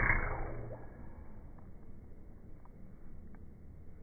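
A bowstring snaps forward as an arrow is released.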